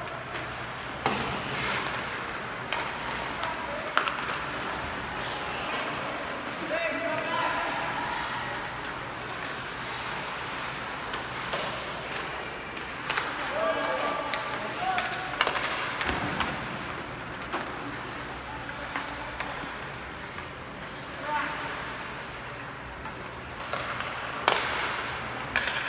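Ice skates scrape and hiss across the ice.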